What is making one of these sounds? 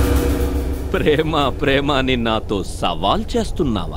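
A young man sings loudly and with feeling.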